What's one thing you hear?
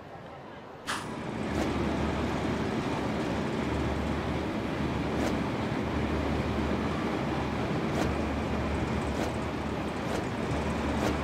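Hands and feet scrape and thud on metal pipes during a climb.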